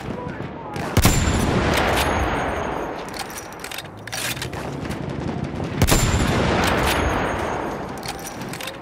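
A bolt-action rifle fires sharp shots.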